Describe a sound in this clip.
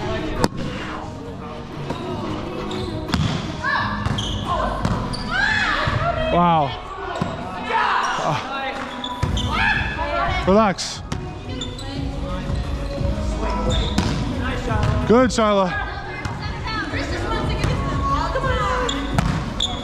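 Young women call out and shout during play.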